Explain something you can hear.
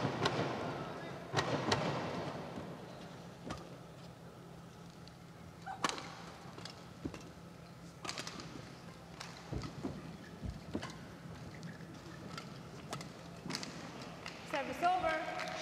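A shuttlecock is struck sharply by rackets in a fast rally, echoing in a large hall.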